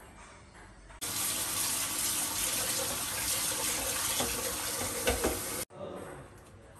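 Water runs from a tap into a pot.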